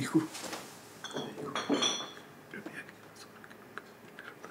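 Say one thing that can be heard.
A man whispers softly close by.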